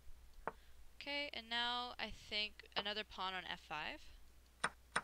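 A young woman speaks with animation through a headset microphone.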